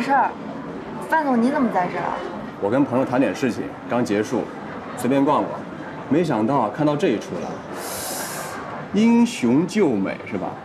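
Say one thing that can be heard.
A man speaks calmly with a slight teasing tone.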